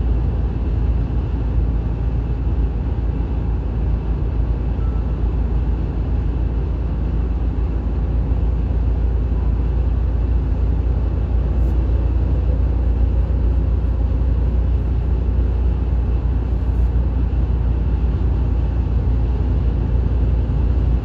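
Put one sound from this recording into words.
A car engine and tyres rumble steadily on the road from inside the car.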